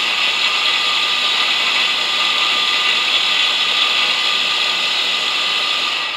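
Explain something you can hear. A grinding machine motor whirs steadily close by.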